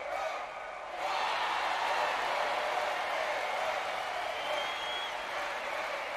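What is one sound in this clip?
A large crowd cheers loudly in a big stadium.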